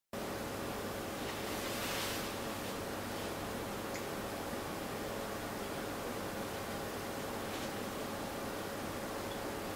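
A small bird pecks and taps at a feeder.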